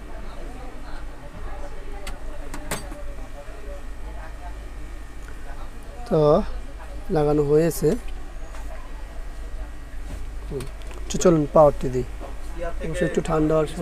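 Hands handle circuit boards and cables with light taps and scrapes on a table.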